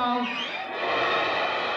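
A young man speaks loudly into a microphone.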